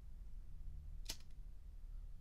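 A metal lighter lid clicks open.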